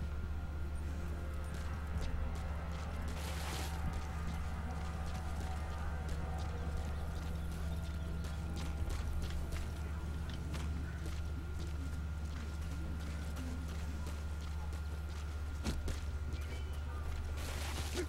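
Footsteps crunch quickly over dirt and rock.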